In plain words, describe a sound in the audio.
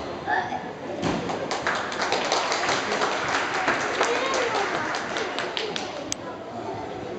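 Spectators clap their hands in a large echoing hall.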